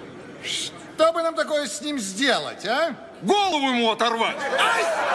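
A man sings loudly with a wavering voice.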